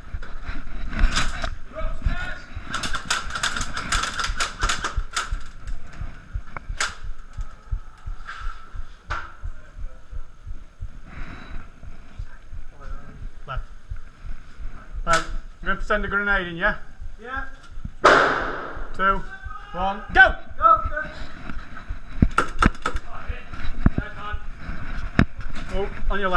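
Airsoft pellets crack against a wooden door in rapid bursts.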